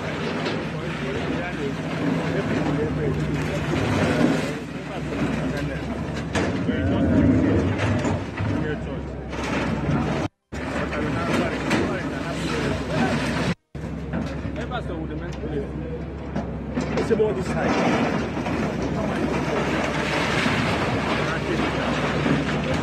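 A crowd of men talks and shouts excitedly nearby.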